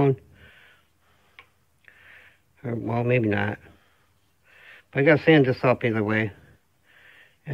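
Wooden rings click softly as they slide onto a wooden spindle.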